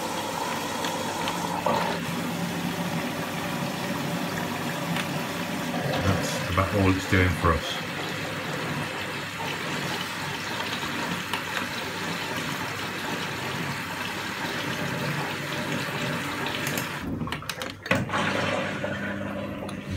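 A washing machine button clicks.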